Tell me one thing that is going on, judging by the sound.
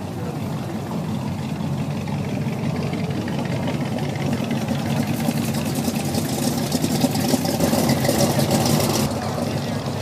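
Old car engines rumble as cars drive past one after another.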